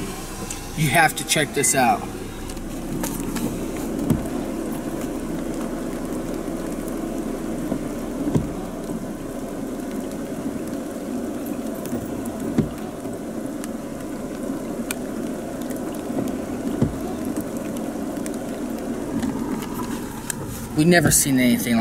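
Rain patters steadily on a car.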